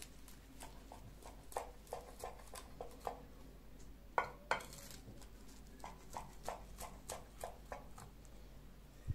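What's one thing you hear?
A knife cuts through a crisp baked crust with crunching, scraping sounds.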